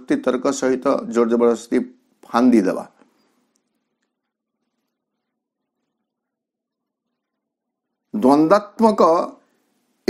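A man speaks calmly and close to a microphone, with long pauses.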